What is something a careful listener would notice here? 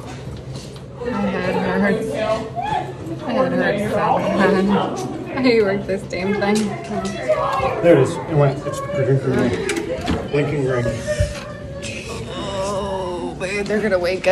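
A middle-aged woman talks with animation close to the microphone.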